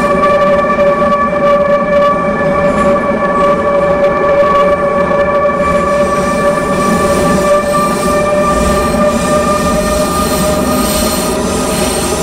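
Train wheels rumble over the rails through a tunnel.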